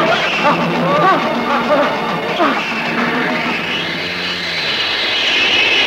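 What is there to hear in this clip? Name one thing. Men shout as they fight.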